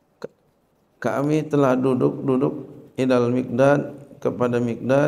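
A man speaks calmly into a microphone, his voice carried by a loudspeaker.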